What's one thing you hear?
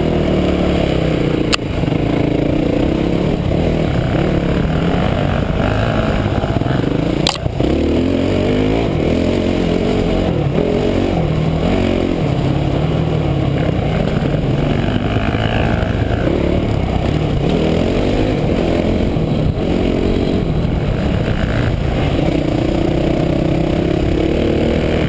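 A dirt bike engine roars close by, its pitch rising and falling as the rider speeds up and slows.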